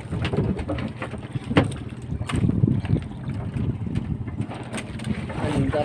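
Water splashes against a boat's hull.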